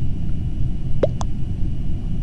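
A short electronic blip sounds as a game chat message arrives.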